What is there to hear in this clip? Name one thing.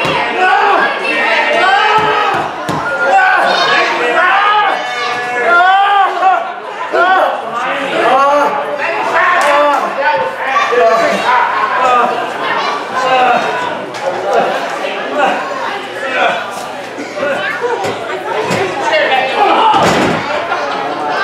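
Spectators shout and cheer.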